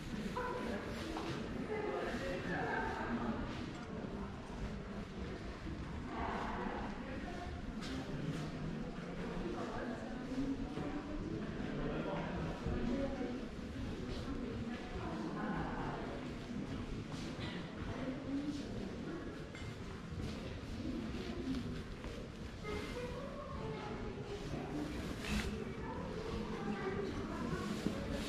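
Men and women visitors talk quietly in a large echoing hall.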